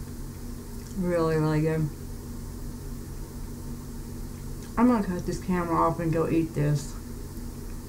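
A woman speaks softly and playfully close to a microphone.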